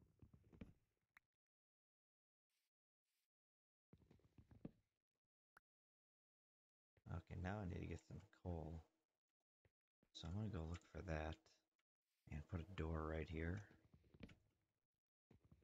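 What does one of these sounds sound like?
Footsteps thud softly on wood and earth.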